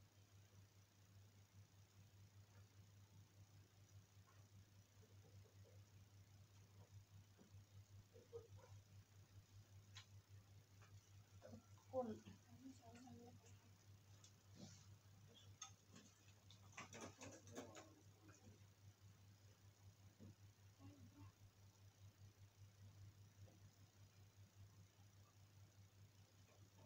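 Cloth rustles.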